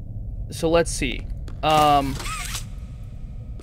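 A young man exclaims loudly through a microphone.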